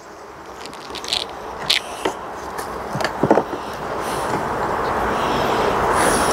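A metal tool scrapes and clicks against wooden frames.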